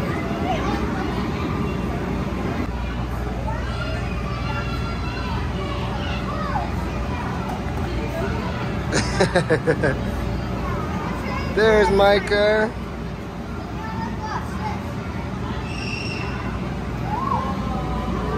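Young children chatter and shout.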